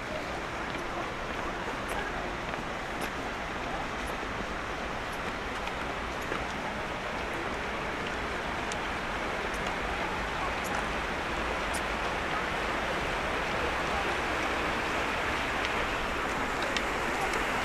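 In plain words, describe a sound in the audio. A shallow stream rushes and babbles over stones nearby.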